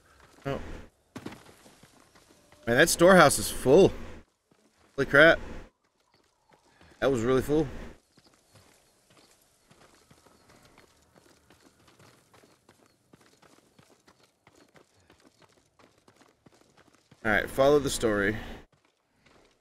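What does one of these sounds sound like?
A man speaks with animation into a close microphone, in short bursts.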